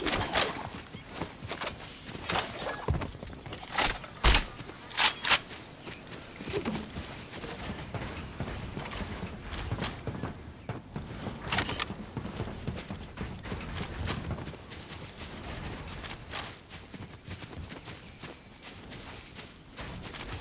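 Building pieces snap into place with sharp, quick clacks.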